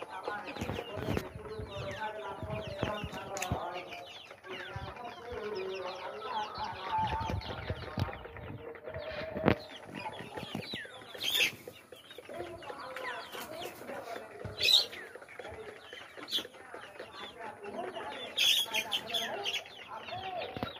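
Many chicks cheep and peep constantly.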